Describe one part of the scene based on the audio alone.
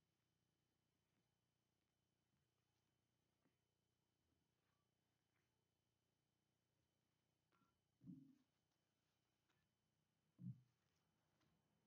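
Cards are laid down softly on a cloth-covered table.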